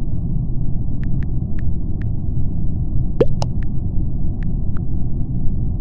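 Phone keyboard taps click softly.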